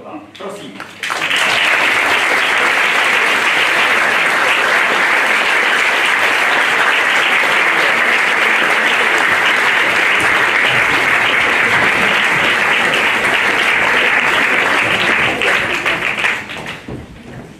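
An audience claps loudly and steadily.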